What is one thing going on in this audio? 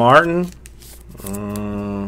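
Cards flick and shuffle between hands.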